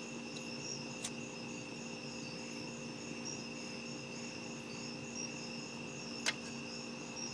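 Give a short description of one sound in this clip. A lighter clicks.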